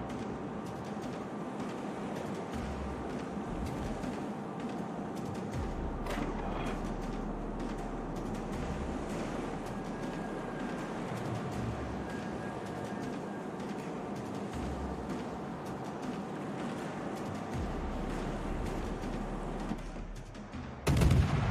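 Water churns and rushes past a ship's hull.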